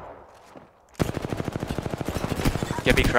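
A rapid-fire gun shoots a fast burst of shots.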